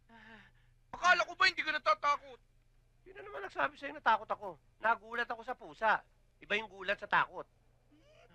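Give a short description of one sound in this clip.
A man speaks in a tense voice.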